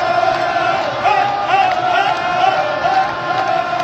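A man close by shouts and laughs with excitement.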